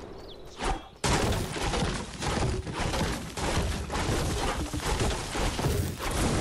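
A pickaxe strikes a tree trunk with repeated hard thwacks.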